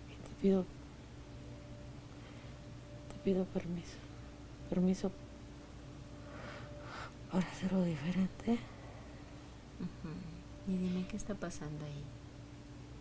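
A woman speaks softly and slowly close by.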